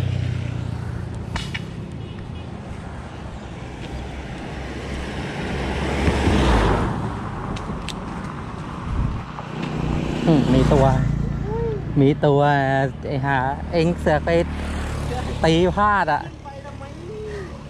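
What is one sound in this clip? Footsteps crunch on a road surface.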